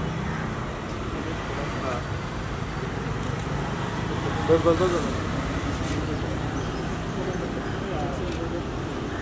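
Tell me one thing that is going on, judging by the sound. A car engine idles with a low steady rumble.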